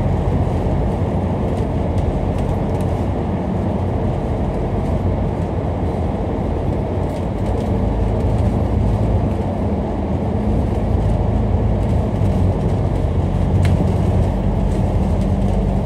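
A vehicle's engine hums steadily from inside while driving.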